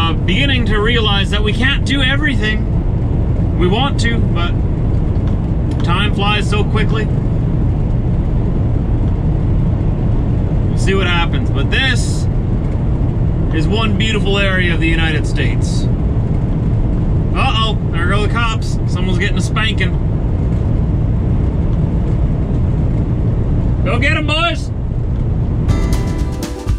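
A truck's engine drones steadily.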